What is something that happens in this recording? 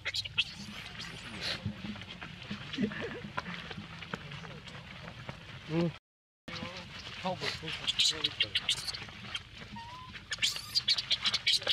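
Dry leaves crunch and rustle under a monkey's feet.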